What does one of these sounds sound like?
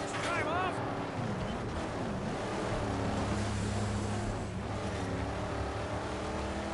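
Tyres skid and crunch over sand and gravel.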